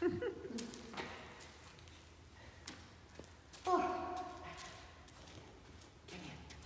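A woman speaks brightly and encouragingly to a dog in a large echoing hall.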